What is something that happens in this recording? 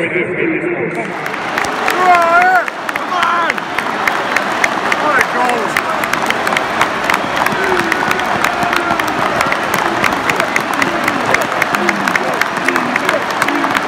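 A large stadium crowd sings and cheers in the open air.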